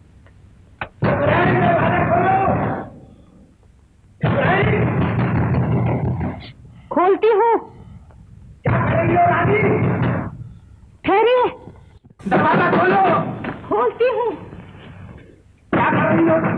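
A woman speaks with strong emotion, close by.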